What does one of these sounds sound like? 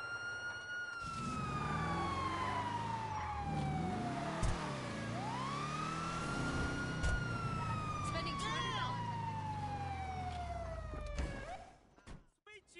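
A car engine revs and hums as a car drives away.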